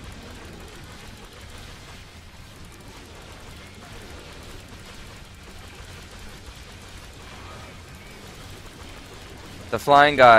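Magic bolts fire and crackle in quick bursts.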